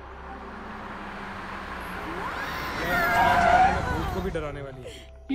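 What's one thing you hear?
A car engine rumbles and grows louder as it drives closer.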